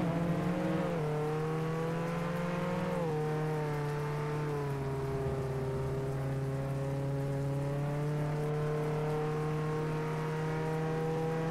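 A truck engine drones steadily at speed.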